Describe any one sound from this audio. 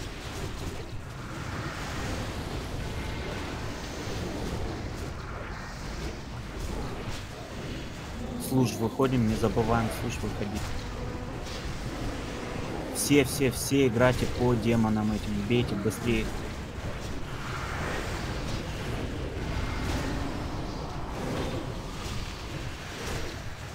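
Magic spells and battle effects crackle and rumble without pause.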